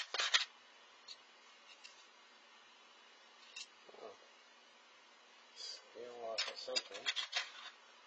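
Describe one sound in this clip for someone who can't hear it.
Small parts click against a plastic tray.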